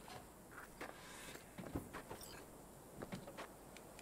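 A car's boot lid opens with a soft click.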